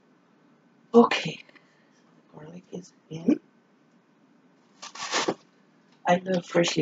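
A middle-aged woman speaks nearby in short bursts.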